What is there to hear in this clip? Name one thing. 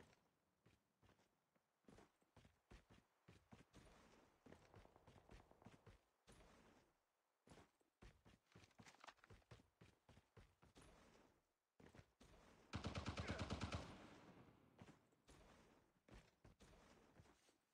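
Footsteps run quickly over dirt and rock.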